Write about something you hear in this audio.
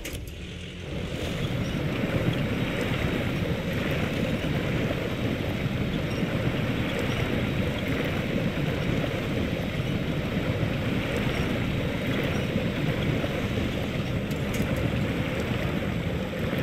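A truck engine roars steadily.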